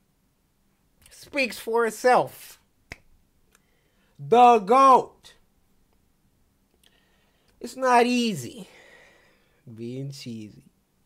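A young man talks loudly and with animation into a close microphone, in short bursts.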